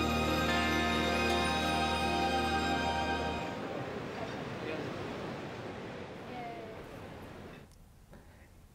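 A string orchestra plays a sustained melody, then fades away.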